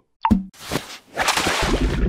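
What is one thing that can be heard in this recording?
Bubbles fizz up through water.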